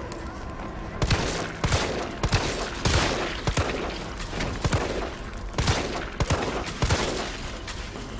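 A handgun fires repeated loud shots.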